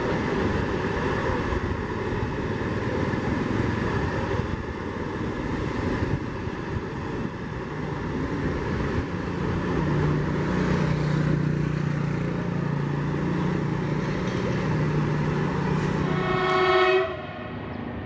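A high-speed train rushes past on the tracks with a steady roar.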